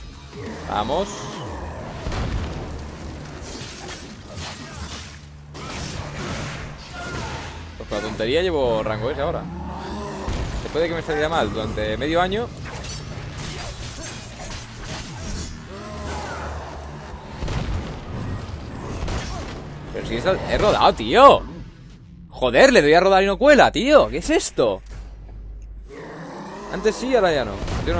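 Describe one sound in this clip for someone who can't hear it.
Heavy blows and crashing impacts sound again and again.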